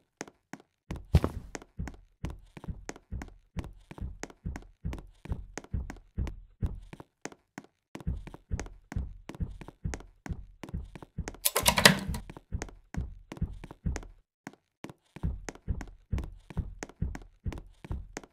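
Footsteps patter quickly and steadily on a hard floor.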